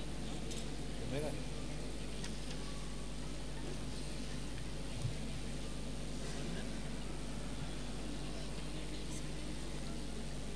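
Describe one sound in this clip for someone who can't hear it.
A crowd of people murmurs and chatters indoors.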